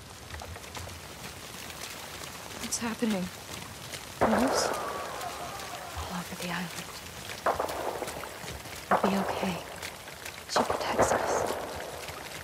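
Footsteps rustle through dense leaves and undergrowth.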